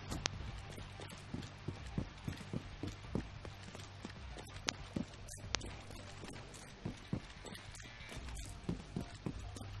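Heavy footsteps thud at a steady walking pace.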